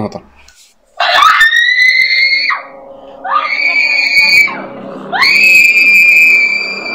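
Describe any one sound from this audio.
A girl shrieks loudly several times.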